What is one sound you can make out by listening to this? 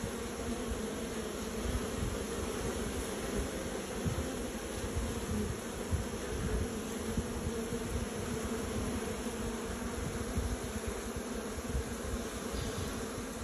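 Bees buzz and hum steadily close by.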